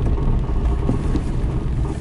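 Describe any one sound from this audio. A windshield wiper sweeps across the glass.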